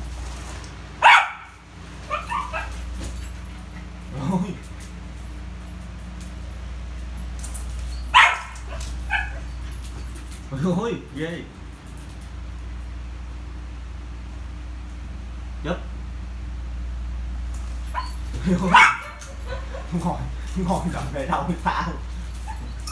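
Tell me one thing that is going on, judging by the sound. A balloon thumps as a small dog bats it.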